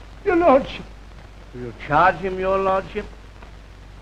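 A man speaks gruffly and with animation, close by.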